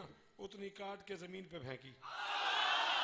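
A man recites loudly through a microphone in an echoing hall.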